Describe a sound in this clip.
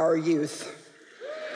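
A middle-aged woman speaks through a microphone.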